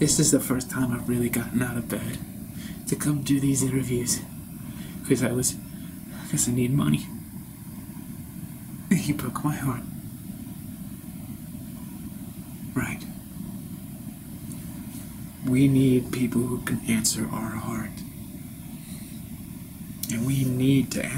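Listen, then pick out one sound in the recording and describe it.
A man speaks slowly and intensely, close by, with long pauses.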